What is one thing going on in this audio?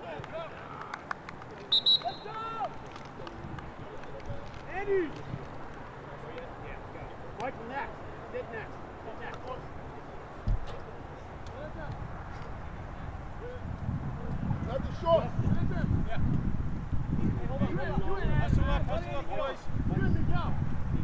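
Players shout and call to each other at a distance outdoors.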